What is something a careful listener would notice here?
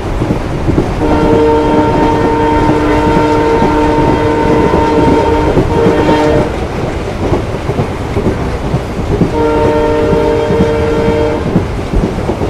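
A train horn blows long, loud blasts.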